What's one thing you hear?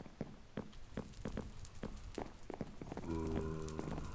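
Footsteps tap steadily on a wooden floor.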